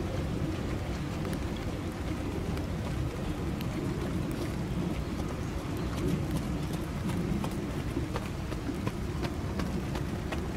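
Hooves thud softly on wet sand.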